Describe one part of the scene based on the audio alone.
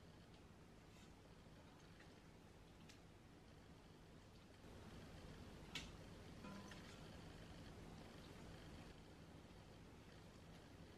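Metal tongs clink against a metal pot.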